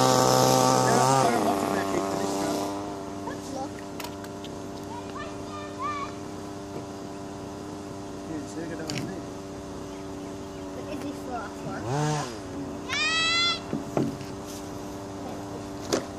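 A small model car motor whines steadily, with its pitch dipping now and then.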